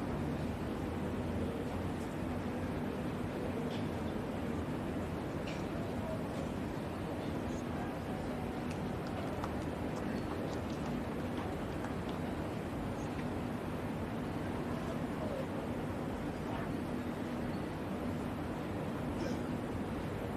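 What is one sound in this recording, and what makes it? A crowd of spectators murmurs softly in the distance.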